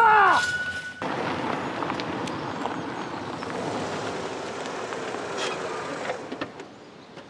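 A car rolls slowly over gravel.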